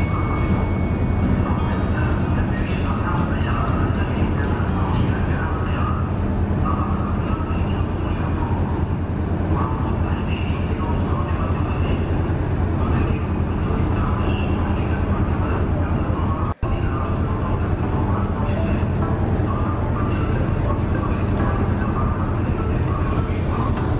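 Wind blows hard and steadily outdoors.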